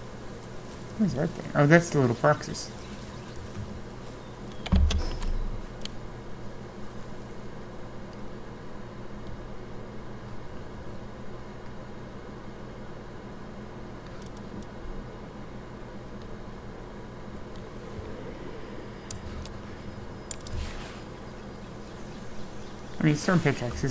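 A woman speaks casually into a close microphone.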